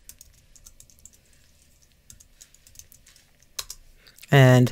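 Keys click quickly on a keyboard.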